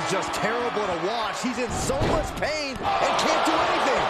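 A heavy body slams onto a wrestling ring mat.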